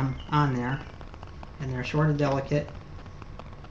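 A middle-aged man speaks calmly close by.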